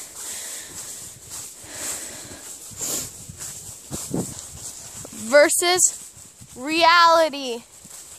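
A horse's hooves crunch through dry leaves at a walk.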